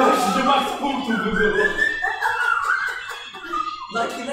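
A group of young men laugh loudly.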